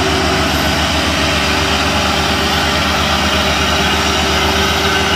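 A heavy truck's diesel engine rumbles steadily as the truck drives slowly closer.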